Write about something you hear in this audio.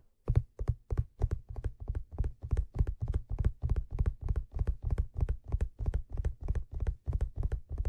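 Fingers tap quickly and steadily on a leather hat, close up.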